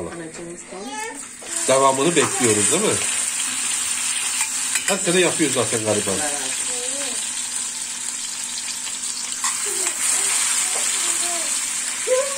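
Soft tomato chunks plop into a pan.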